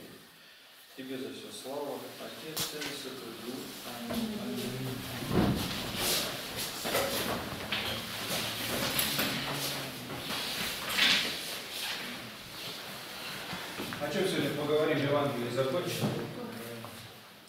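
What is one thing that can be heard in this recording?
Several men and women murmur and read aloud.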